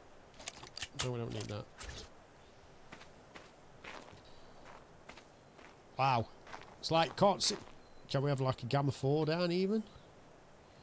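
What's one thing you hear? A man talks with animation through a close microphone.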